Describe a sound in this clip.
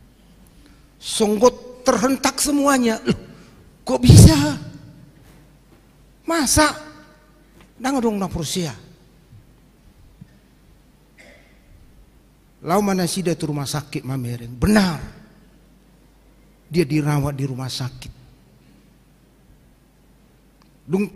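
A middle-aged man preaches into a microphone in short, forceful phrases with pauses between them, heard through a loudspeaker in an echoing hall.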